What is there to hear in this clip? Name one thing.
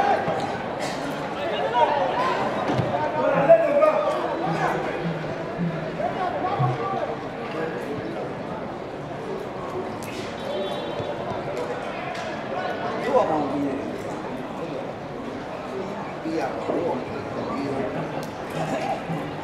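Football players shout to each other across an open outdoor pitch.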